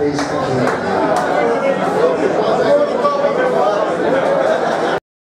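A man sings into a microphone through loudspeakers.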